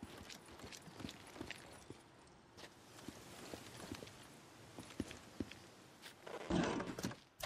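Footsteps walk on asphalt.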